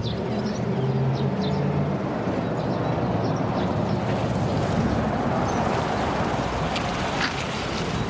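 Tyres roll on asphalt.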